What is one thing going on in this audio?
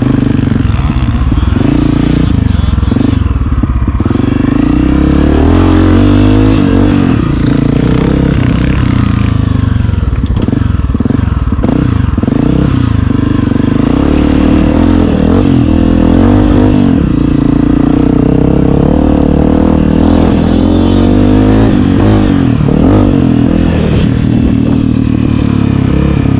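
A dirt bike engine revs hard and rises and falls in pitch close by.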